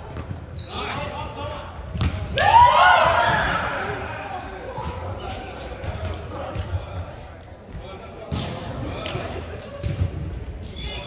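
Young men shout and call out during play.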